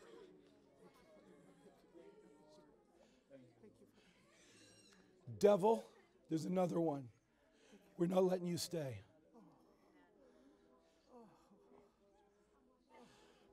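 Several people murmur prayers quietly in the background.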